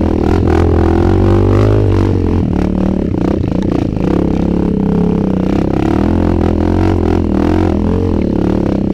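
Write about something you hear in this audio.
Tyres bump and slide over a muddy trail.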